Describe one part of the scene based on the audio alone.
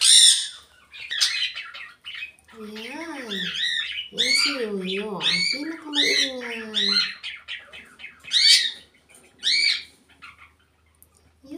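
A parrot chatters and squawks in short bursts, mimicking speech.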